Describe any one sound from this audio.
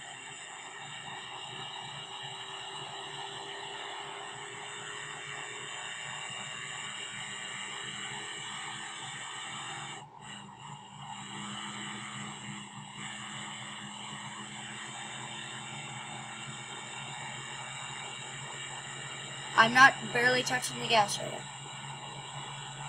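A car engine roars steadily as the car speeds up.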